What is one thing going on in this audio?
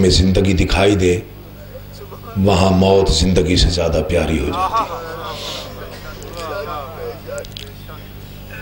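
A man speaks passionately through a microphone and loudspeakers.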